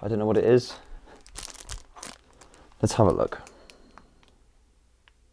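Items rattle and clatter as a man handles them.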